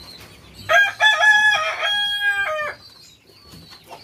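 A pigeon flaps its wings.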